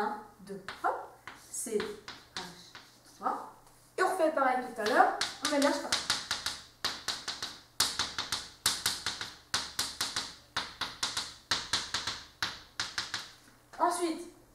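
Chalk taps and scrapes on a chalkboard in quick strokes.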